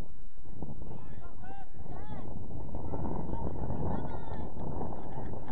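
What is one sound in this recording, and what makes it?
Young players call out to each other far off across an open field.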